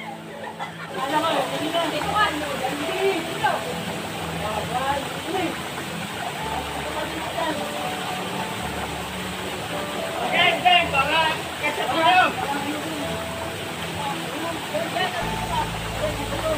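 Young people shout and laugh playfully.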